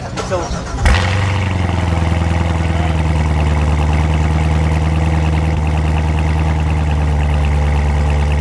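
A car engine idles with a deep, steady rumble.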